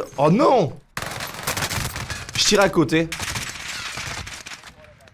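Rapid gunfire crackles and bangs.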